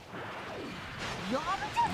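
An energy blast explodes with a rumble.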